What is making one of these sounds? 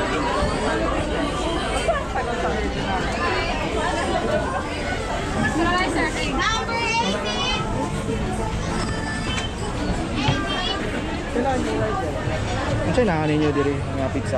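A busy crowd chatters all around.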